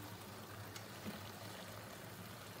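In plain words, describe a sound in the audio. Vegetable pieces drop into a frying pan.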